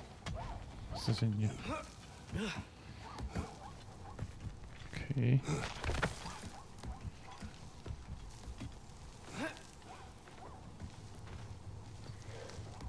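Hands grab and knock against wooden beams while climbing.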